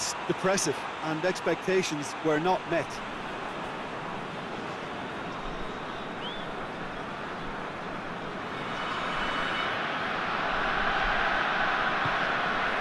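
A large stadium crowd cheers and roars steadily, swelling louder near the end.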